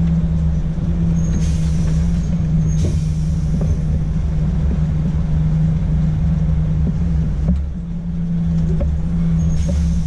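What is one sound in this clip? A truck engine hums steadily and low from inside the cab.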